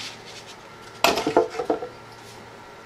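A wooden board knocks onto a workbench.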